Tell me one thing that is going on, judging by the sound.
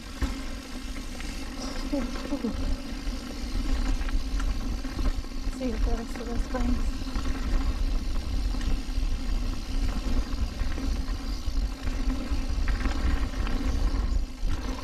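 A bicycle chain and frame rattle over bumps.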